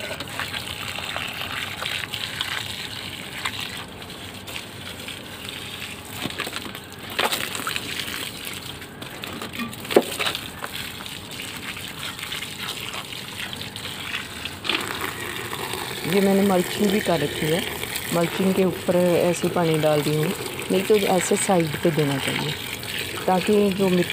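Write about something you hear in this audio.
Water pours from a watering can and splashes into plant pots.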